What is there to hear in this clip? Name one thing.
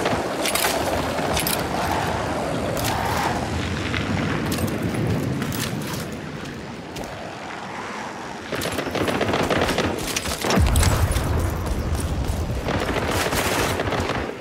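Rifle shots crack and echo between buildings.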